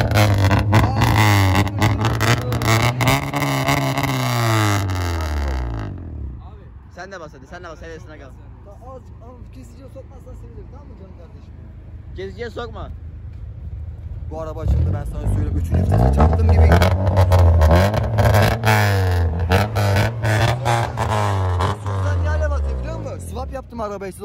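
A car engine revs hard and roars through a loud exhaust.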